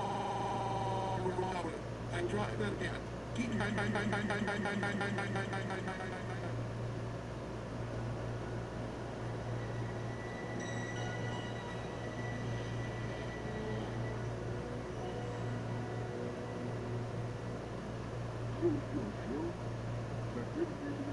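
Music plays through small laptop speakers, loud at first and then quieter.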